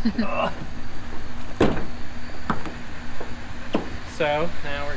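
Footsteps thump on a truck bed.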